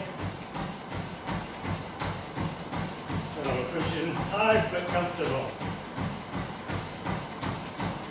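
Feet pound steadily on a running treadmill belt.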